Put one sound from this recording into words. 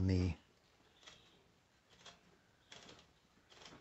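A typewriter's carriage clicks and ratchets softly as its knob is turned.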